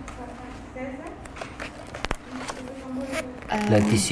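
Paper pages rustle as a brochure is leafed through.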